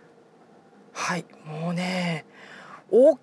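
A car engine cranks and starts up.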